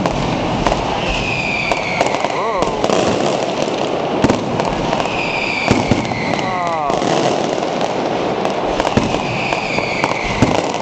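Firework rockets whistle and hiss.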